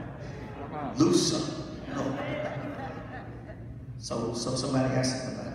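An elderly man speaks with feeling into a microphone, heard through loudspeakers in a large echoing hall.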